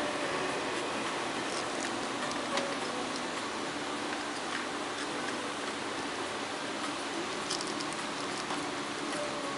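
Plastic wire connectors creak and click softly as they are twisted onto wires.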